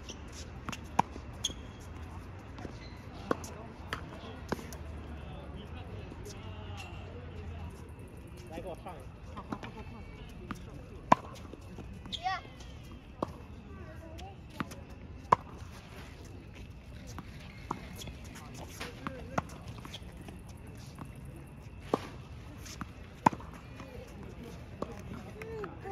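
Sneakers squeak and scuff on a hard court.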